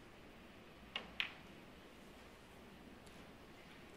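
Snooker balls knock together.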